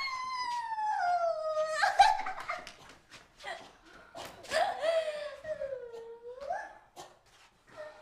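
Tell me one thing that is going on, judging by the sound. A young woman wails and sobs loudly in distress.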